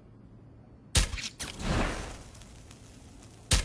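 A smoke canister hisses out a burst of smoke.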